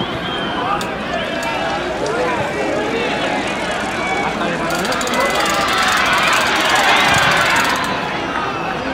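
Players call out to each other across the field.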